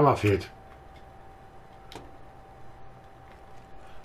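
A car hood clicks open.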